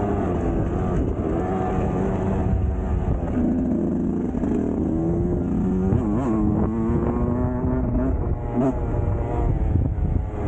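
A dirt bike engine revs and drones steadily, rising and falling in pitch.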